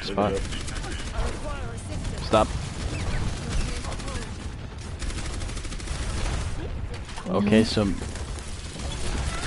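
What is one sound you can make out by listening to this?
A weapon fires rapid, buzzing bursts of shots.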